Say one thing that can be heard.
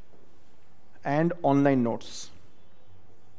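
A man speaks briefly through a headset microphone.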